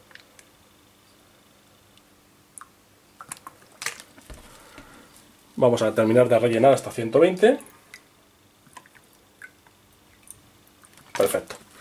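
Water pours from a bottle into a glass.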